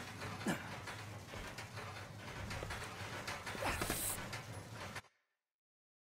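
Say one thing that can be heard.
Footsteps clank on a metal staircase.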